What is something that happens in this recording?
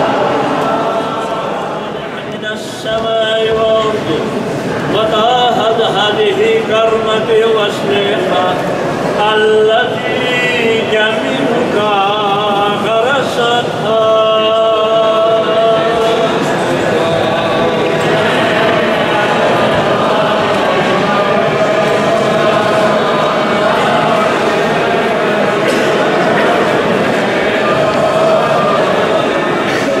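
Men chant together in a slow, solemn choir that echoes through a large stone hall.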